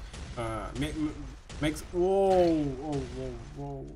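A plasma gun fires rapid bursts of energy shots.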